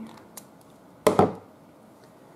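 Scissors are set down on a wooden table with a knock.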